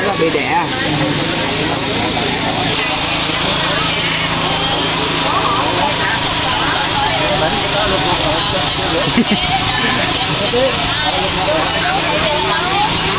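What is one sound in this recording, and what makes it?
A crowd chatters nearby outdoors.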